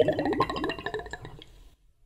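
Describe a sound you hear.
A man sips and slurps a drink loudly.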